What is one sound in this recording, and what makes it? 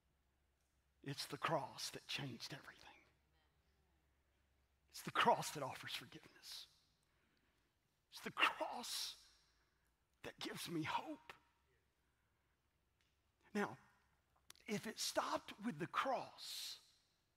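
A middle-aged man speaks emphatically through a headset microphone, with long pauses.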